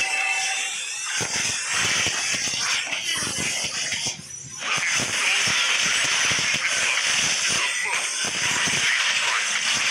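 Game sound effects of spells and strikes crackle and clash rapidly.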